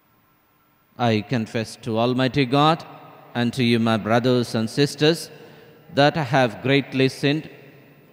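A man speaks calmly and clearly into a microphone in a large echoing hall.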